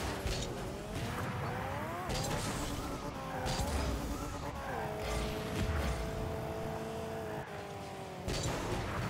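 A car engine hums and rises in pitch.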